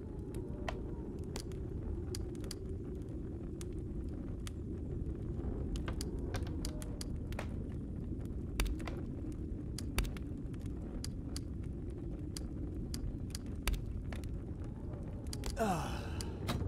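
Torches crackle and hiss steadily.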